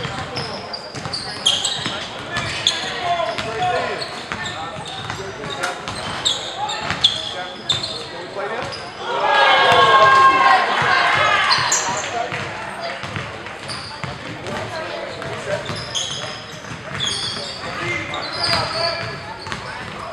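Sneakers squeak sharply on a hard floor in an echoing gym.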